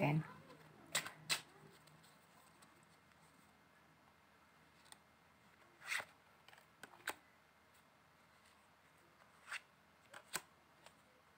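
A small box clicks and taps as hands handle it.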